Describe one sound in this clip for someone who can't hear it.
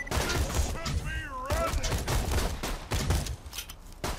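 A gun is reloaded with mechanical clicks.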